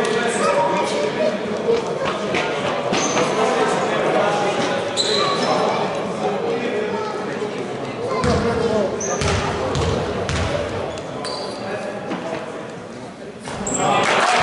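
Voices of young men and spectators echo around a large indoor hall.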